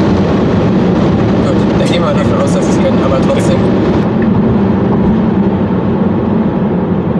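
A car engine and tyres hum steadily.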